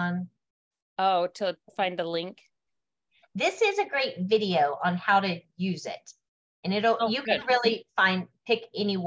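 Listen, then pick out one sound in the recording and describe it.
Another middle-aged woman speaks with animation over an online call.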